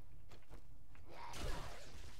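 A zombie growls close by.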